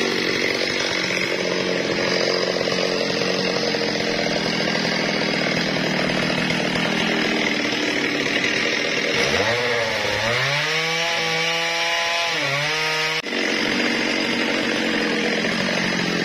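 A chainsaw engine roars loudly and steadily up close.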